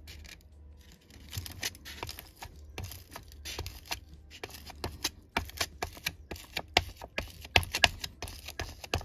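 A stone scrapes and taps against foam.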